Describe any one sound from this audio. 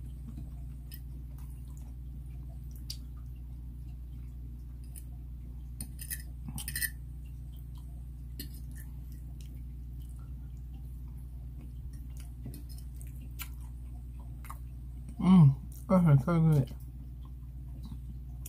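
A young woman chews food close to a microphone with soft wet smacks.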